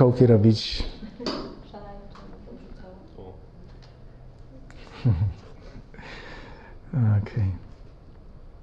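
A man speaks through a microphone in short bursts, with pauses.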